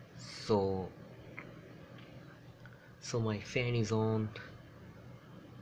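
A computer fan hums steadily.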